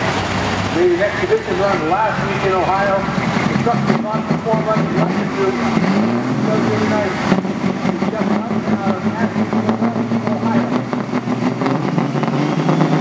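A diesel truck engine revs up and down in bursts.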